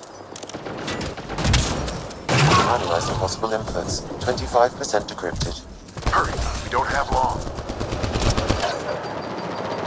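Guns fire rapid bursts of shots.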